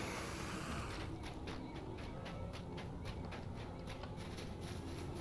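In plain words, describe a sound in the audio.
Footsteps rustle steadily through dry grass.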